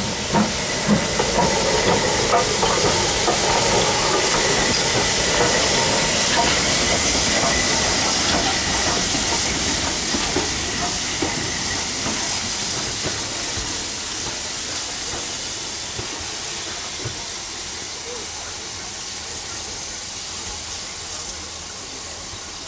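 A steam tank engine chuffs as it pulls away and fades into the distance.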